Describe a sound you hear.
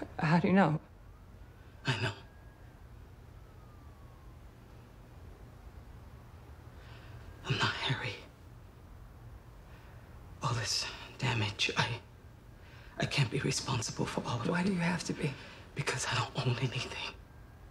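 A woman speaks in a low, tense voice close by.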